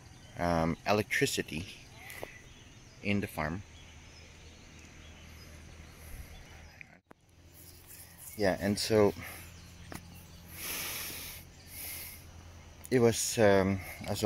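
A man speaks calmly, close up, in short phrases.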